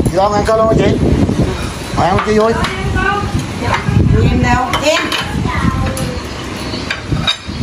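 Chopsticks clink against bowls.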